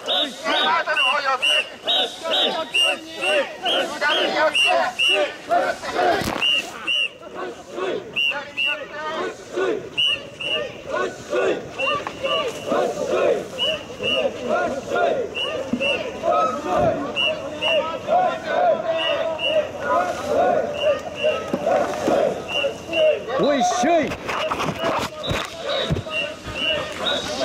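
A man blows sharp, rhythmic whistle blasts up close.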